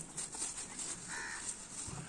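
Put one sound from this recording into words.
A cow munches on fresh greens.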